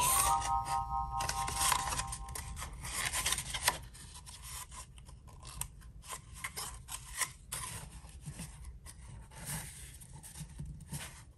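Cardboard crinkles and rustles as hands fold a paper tube.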